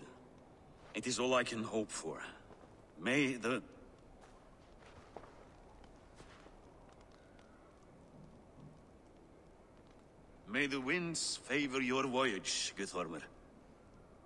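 A second man answers in a gruff, pleased voice.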